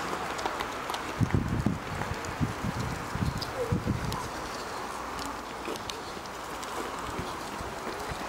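A runner's footsteps slap on the road, passing close by.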